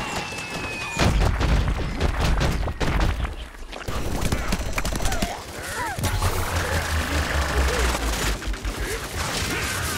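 Rapid game gunfire blasts in bursts.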